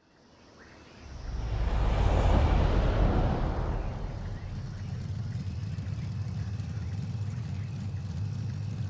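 A sports car engine rumbles low and steady.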